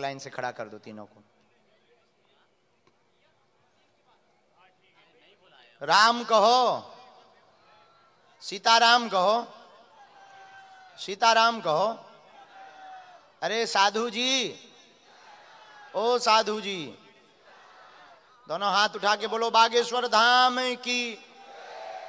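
A young man sings through a microphone in long, wavering phrases, with pauses between them.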